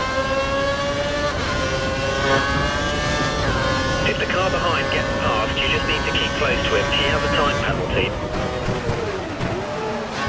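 A racing car engine screams at high revs, then drops in pitch as the car brakes.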